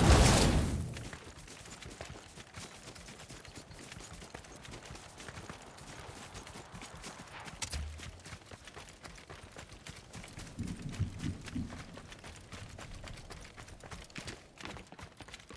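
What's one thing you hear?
Quick footsteps patter over grass and dirt.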